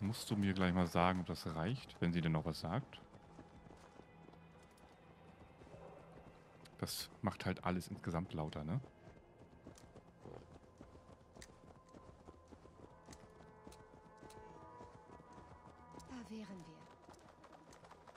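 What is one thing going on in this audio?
A horse's hooves clop steadily on a dirt path.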